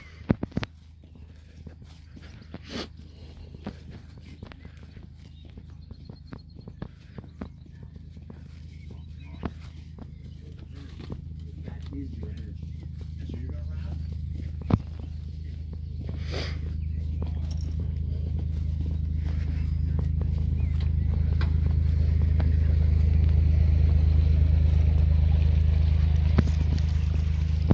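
Footsteps swish and thud on grass.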